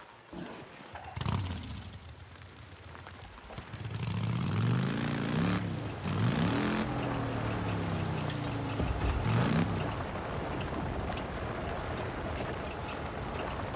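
A motorcycle engine starts and revs up and down.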